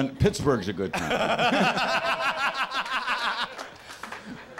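A middle-aged man laughs heartily into a microphone.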